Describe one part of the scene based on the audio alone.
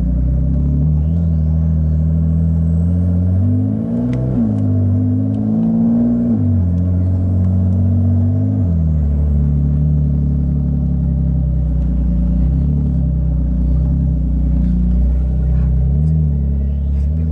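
A car engine hums and revs steadily from inside the cabin.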